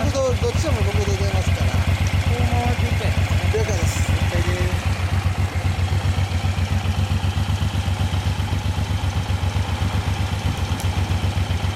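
A motorcycle engine idles close by with a steady, fast throb.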